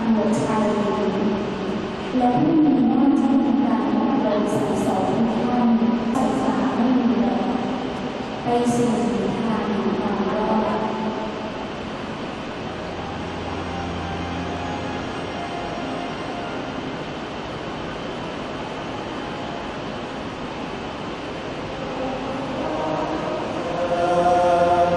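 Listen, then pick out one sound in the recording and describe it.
A large choir sings, echoing through a big hall.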